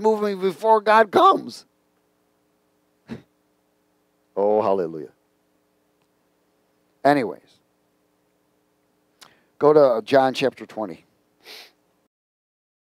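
A man speaks with animation into a headset microphone, with pauses between phrases.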